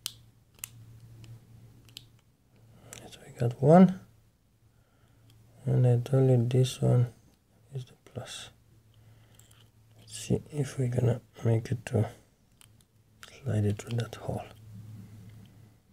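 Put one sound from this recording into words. A small screwdriver clicks and scrapes against a plastic case.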